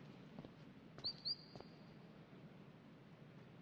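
Waves lap gently against a shore.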